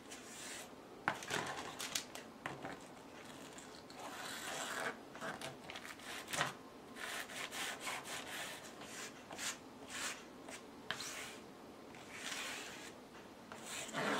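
A plastic scraper scrapes and smears paint across a board.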